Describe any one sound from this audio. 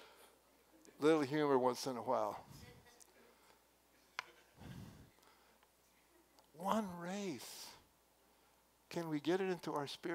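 An elderly man speaks slowly and earnestly through a headset microphone, with pauses.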